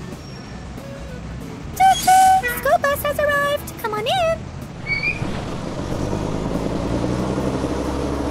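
A bus engine hums and grows louder as the bus pulls away.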